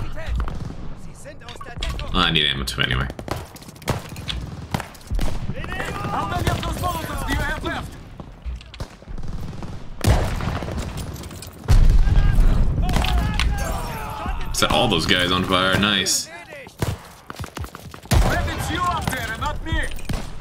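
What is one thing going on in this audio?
Distant explosions and gunfire rumble through a battle.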